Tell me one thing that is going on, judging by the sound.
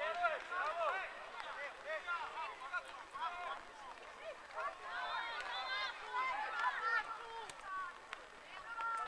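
Young players shout and call out across an outdoor field.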